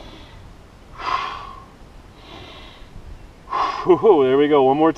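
A woman breathes out deeply.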